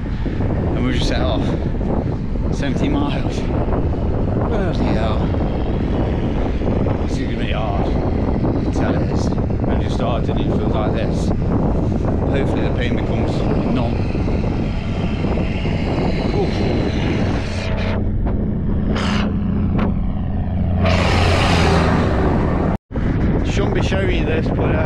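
A man talks breathlessly close to a microphone.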